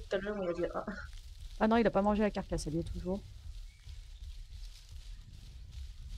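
Footsteps rustle through leafy undergrowth.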